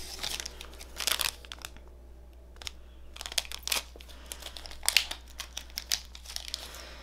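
Plastic wrapping crinkles and rustles as it is torn open.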